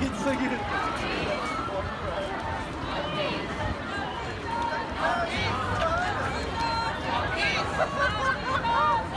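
Footsteps of many people shuffle on pavement.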